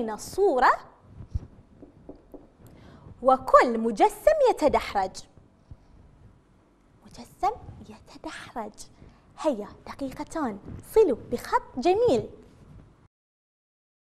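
A woman speaks clearly and with animation into a nearby microphone.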